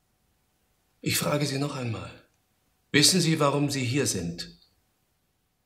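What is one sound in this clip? A middle-aged man speaks sternly, close by.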